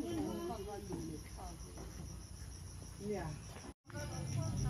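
An elderly woman talks casually nearby.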